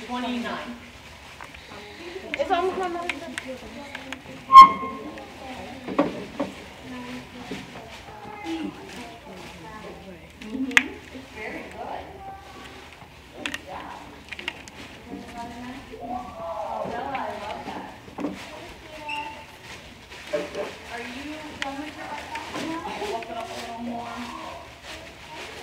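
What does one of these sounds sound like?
A young boy talks calmly and close by.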